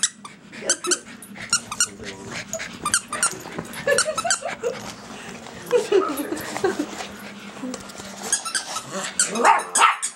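A child squeals and shrieks playfully nearby.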